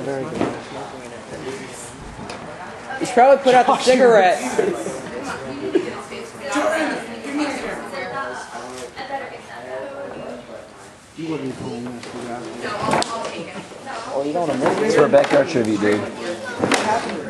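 Several young men talk and shout over one another close by.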